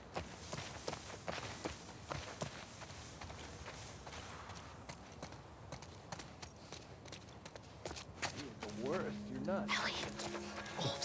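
Footsteps rustle through tall grass at a quick pace.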